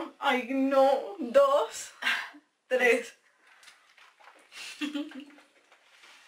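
A second young woman laughs and talks cheerfully close by.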